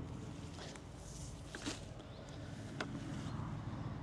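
Potato plants rustle as they are handled.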